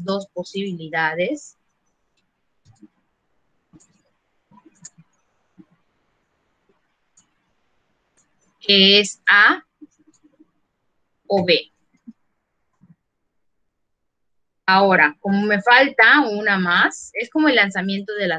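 A young woman speaks calmly through an online call, in short bursts with pauses.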